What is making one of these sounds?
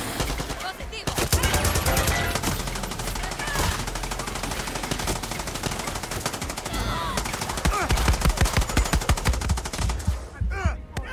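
A machine gun fires in rapid, loud bursts.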